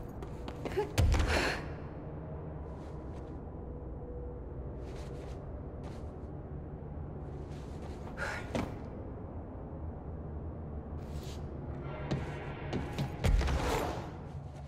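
A heavy thud sounds as a person lands from a jump.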